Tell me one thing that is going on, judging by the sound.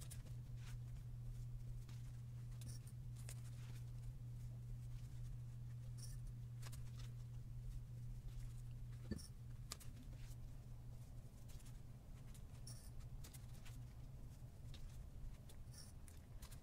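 Paper crinkles and rustles softly between fingers.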